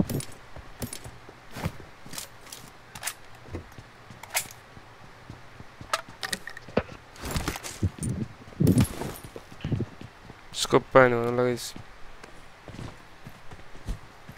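Items click as they are picked up.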